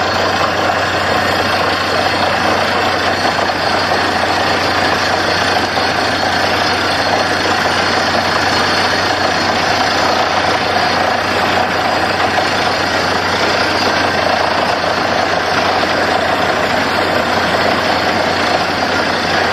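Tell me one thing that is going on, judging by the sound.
A drilling rig's engine roars steadily up close.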